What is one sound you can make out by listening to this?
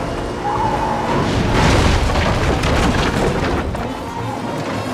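Tyres skid and scrape on a loose dirt road.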